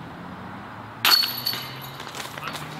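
A flying disc strikes the chains of a disc golf basket with a metallic rattle.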